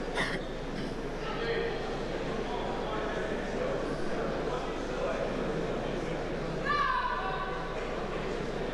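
Men in the crowd shout and call out.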